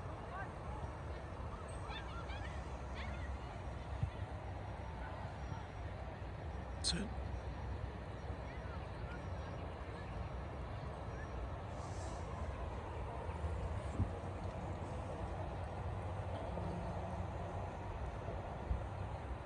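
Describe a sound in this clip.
Wind blows steadily across an open field outdoors.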